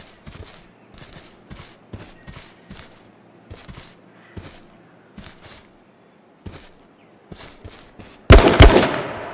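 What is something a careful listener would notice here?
Footsteps swish through tall grass at a steady pace.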